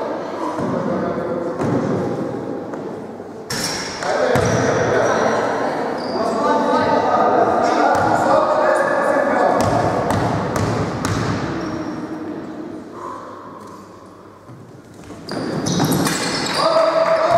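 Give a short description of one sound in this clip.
A crowd of young players and spectators chatters and shouts in a large echoing hall.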